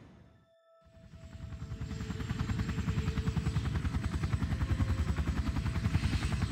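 A helicopter's rotor thumps in a fast, steady beat.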